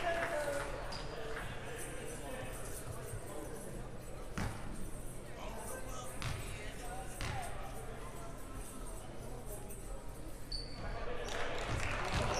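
Spectators chatter faintly in the stands.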